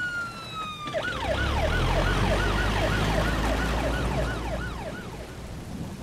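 A police siren wails.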